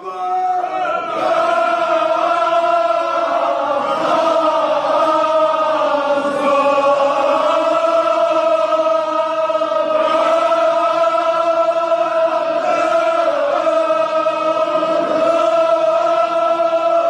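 A crowd of men chants loudly together in a large echoing hall.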